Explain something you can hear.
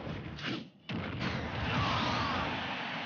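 A video game blast roars and whooshes.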